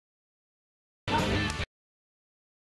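A clapperboard snaps shut.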